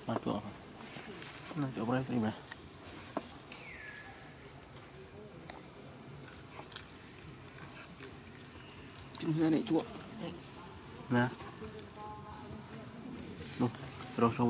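A monkey chews and tears at leaves.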